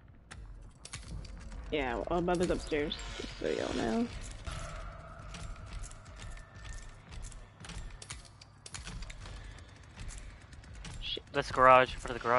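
A metal lock clicks and rattles as it is picked.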